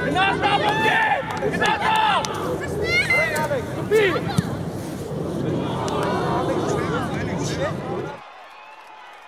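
Adult spectators call out and cheer from the sideline.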